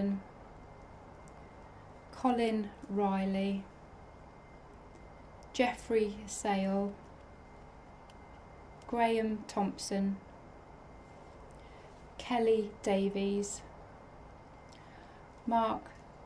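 A young woman reads out slowly and calmly through a microphone, with long pauses.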